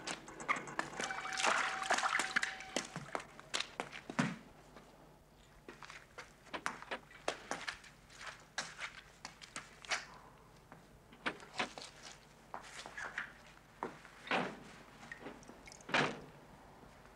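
Footsteps splash through shallow puddles as men run.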